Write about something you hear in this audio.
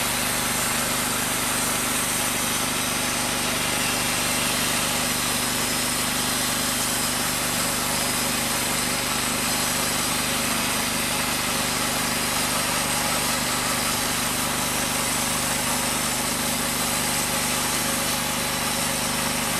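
A band saw blade cuts through a log with a steady whine.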